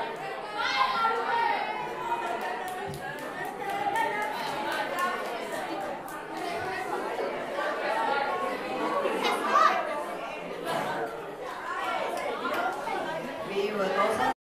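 A group of teenagers sings together in a room with a slight echo.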